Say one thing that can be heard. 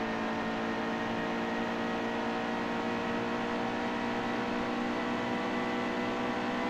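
A race car engine roars at high speed, its pitch rising slowly.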